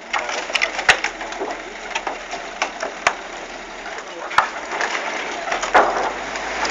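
Wooden logs knock and thud loudly.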